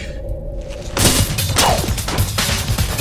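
Swords burst into flame with a loud whoosh and crackle.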